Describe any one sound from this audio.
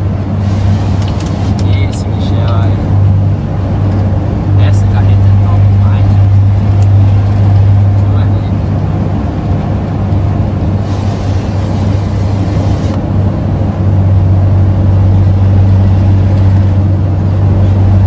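A vehicle engine hums low and steady from inside the cab.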